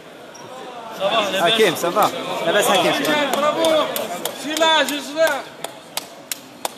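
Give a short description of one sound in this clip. A man talks loudly and excitedly close by.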